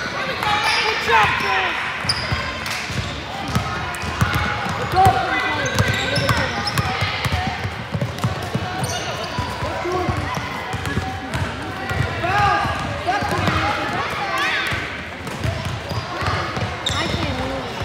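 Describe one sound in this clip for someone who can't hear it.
A basketball bounces on a hard floor as it is dribbled.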